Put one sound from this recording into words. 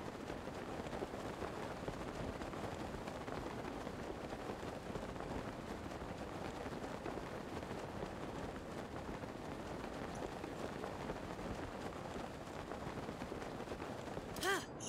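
Wind rushes steadily.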